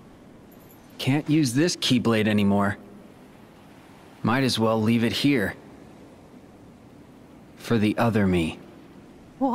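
A young man speaks calmly and quietly.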